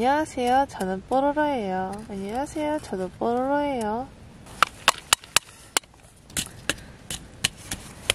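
A plastic snowball maker clicks and packs snow.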